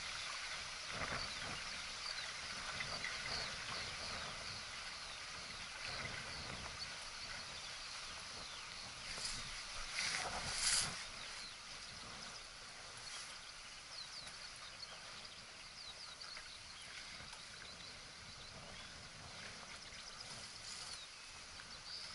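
Wind blows and gusts across the microphone outdoors.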